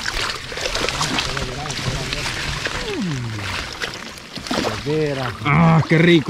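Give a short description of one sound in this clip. Water splashes as people wade through it.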